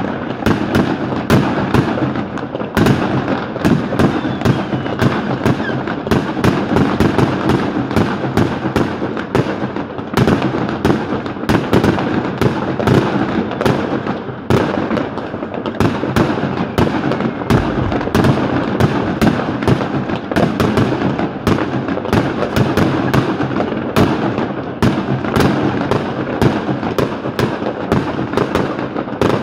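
Sparks hiss and fizz from burning fireworks.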